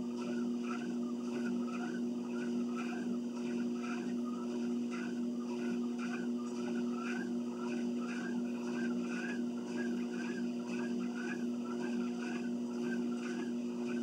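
A treadmill motor hums.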